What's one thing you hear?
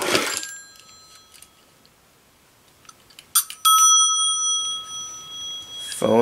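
A small brass bell rings out and slowly fades.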